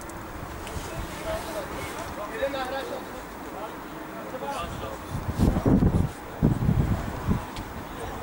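Two men talk calmly close by.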